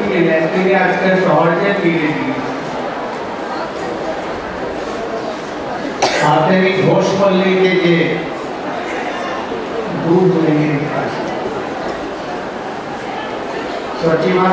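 An elderly man sings slowly into a microphone, heard through a loudspeaker.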